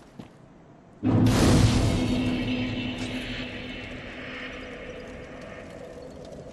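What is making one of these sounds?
A fire bursts into flame with a loud whoosh and roar.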